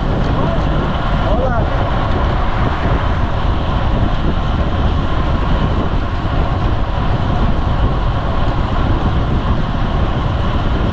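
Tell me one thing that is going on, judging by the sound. Bicycle tyres hum steadily on asphalt.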